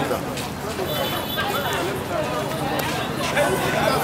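A man and a woman greet each other with animated voices close by.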